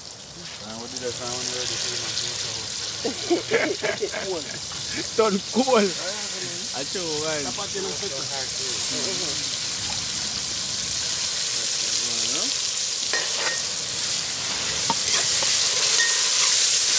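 Food sizzles in a pot over a wood fire, growing louder.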